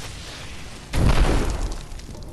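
A magic spell bursts with a roaring whoosh.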